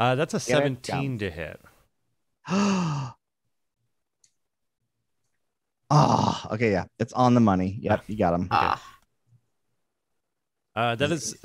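A man talks with animation over an online call, in short bursts with pauses.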